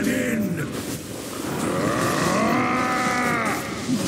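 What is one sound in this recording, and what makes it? Magic blasts and weapon clashes crackle in a fast battle.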